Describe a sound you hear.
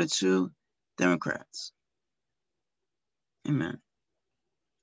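An elderly woman speaks calmly and briefly over an online call.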